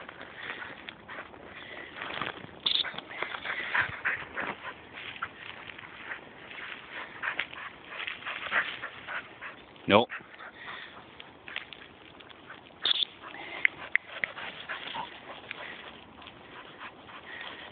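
Dry bracken rustles and crackles as a dog bounds through it.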